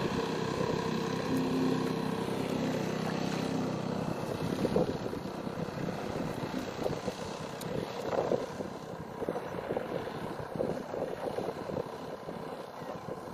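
A small engine of a walking tractor chugs steadily nearby.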